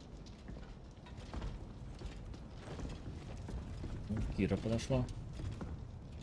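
Heavy metal footsteps thud on debris.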